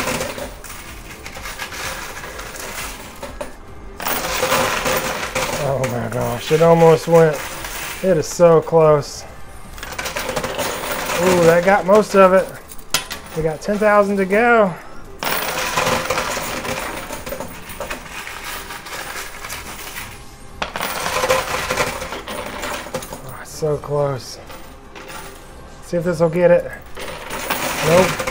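Coins clink and rattle as a pusher shelf slides back and forth.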